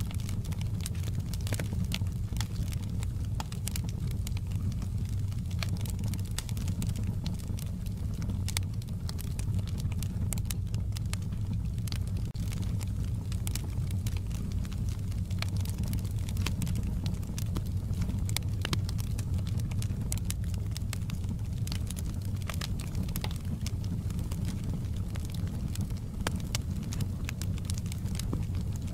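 A log fire crackles and pops.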